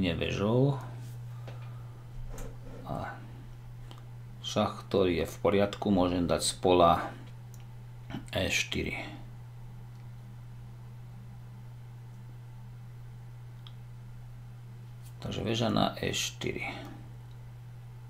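A middle-aged man talks calmly and thoughtfully into a close microphone, in short bursts with pauses.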